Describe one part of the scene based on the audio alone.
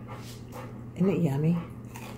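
A man bites into a crunchy lettuce wrap.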